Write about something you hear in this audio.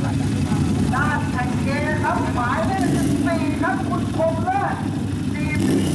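A man speaks loudly nearby over the engine noise.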